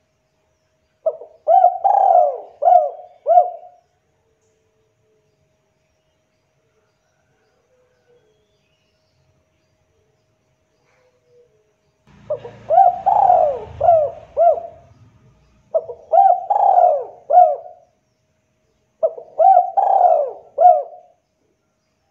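A spotted dove coos in short phrases.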